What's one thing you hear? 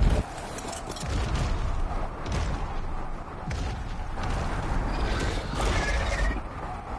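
A large creature's heavy footsteps thud on the ground.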